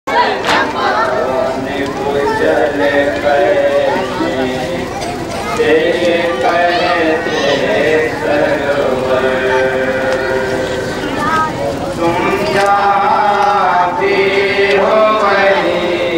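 A man chants a mournful verse loudly through a microphone.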